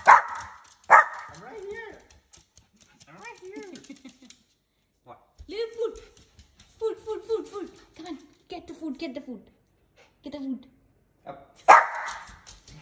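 A small dog barks sharply up close.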